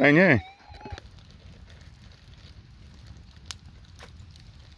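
A campfire crackles and pops softly.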